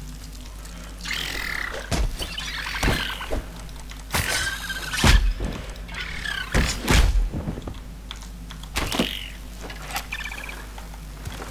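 Blades slash and strike hard in a quick fight.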